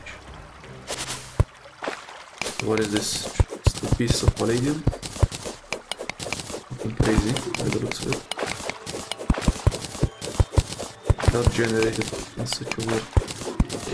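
A pickaxe chips at stone in quick, repeated taps.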